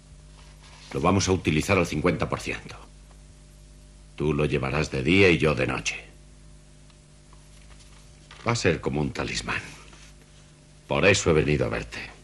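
A man speaks in a firm, low voice nearby.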